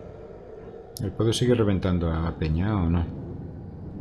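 A man speaks calmly and clearly, close up.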